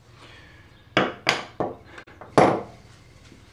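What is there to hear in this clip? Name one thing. Wood knocks sharply against a workbench a few times.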